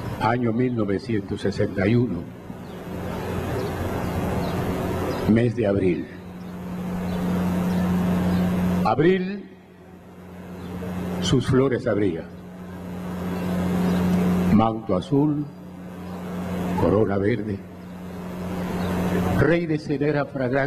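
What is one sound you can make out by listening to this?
An elderly man recites dramatically into a microphone, heard through loudspeakers outdoors.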